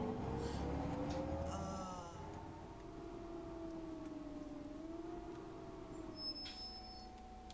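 A bus engine hums and winds down as the bus slows to a stop.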